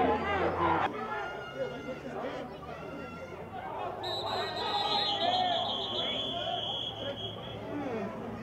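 Football players shout to each other outdoors on a field.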